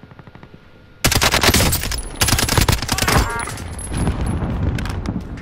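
Rapid gunfire bursts out loudly in quick, repeated volleys.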